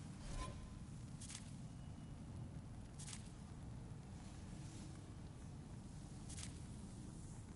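Short soft menu clicks sound every few seconds.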